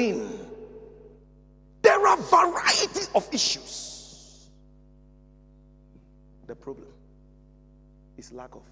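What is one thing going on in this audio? A man speaks with animation into a microphone in an echoing room.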